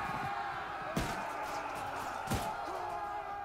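Swords clash against shields with sharp metallic hits.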